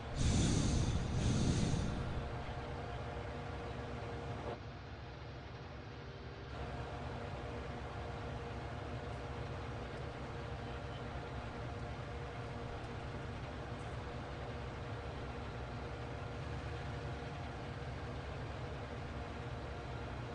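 Mower blades whir through grass.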